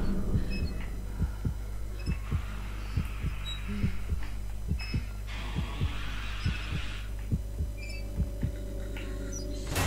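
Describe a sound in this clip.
Quick soft footsteps patter on a hard floor.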